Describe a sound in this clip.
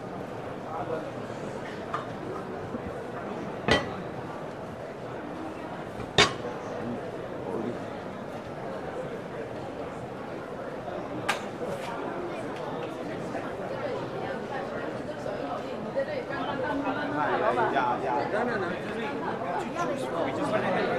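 A crowd of people chatters in a large indoor hall.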